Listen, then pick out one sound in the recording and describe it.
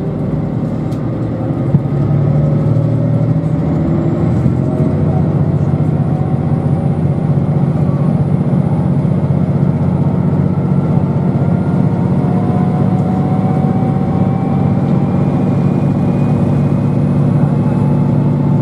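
A train rumbles steadily as it rolls along.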